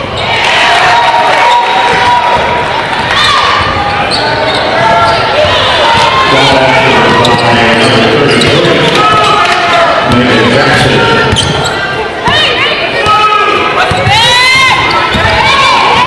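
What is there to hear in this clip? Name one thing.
A crowd talks and cheers in a large echoing gym.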